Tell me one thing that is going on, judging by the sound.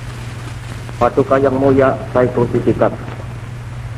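A man reads aloud into a microphone.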